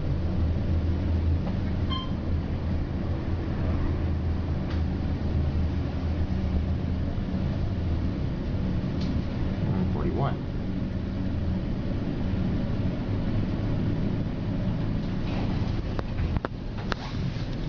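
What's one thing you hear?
An elevator hums steadily as it moves.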